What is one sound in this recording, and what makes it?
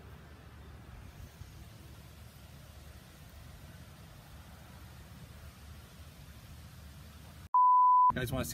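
Wind rumbles softly outdoors.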